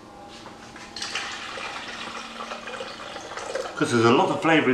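Water pours from a jug into a pot.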